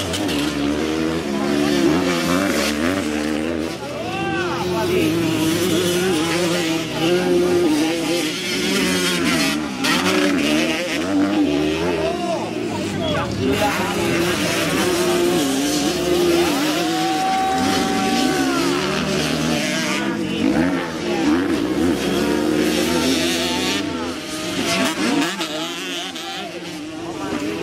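Dirt bike engines rev and whine loudly, rising and falling in pitch.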